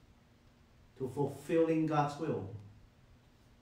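A man speaks calmly and close to a microphone, in a slow chanting voice.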